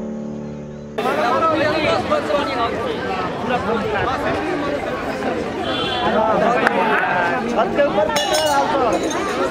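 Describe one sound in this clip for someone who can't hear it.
A crowd of men talk and chatter outdoors, close by.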